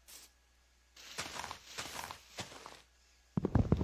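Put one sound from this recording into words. Leaves rustle and crunch as they are broken.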